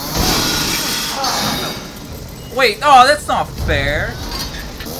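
A chainsaw revs and whines loudly.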